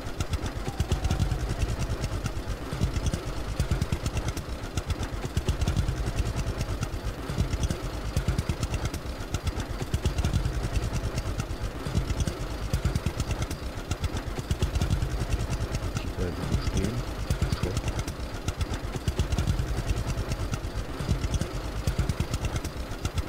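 A trailer rattles along behind a tractor.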